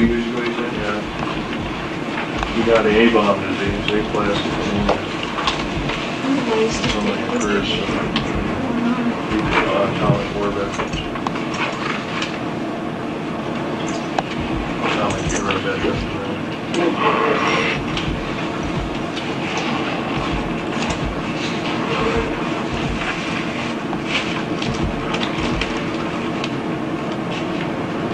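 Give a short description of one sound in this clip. A crowd of adults chatters indoors, with many voices talking at once.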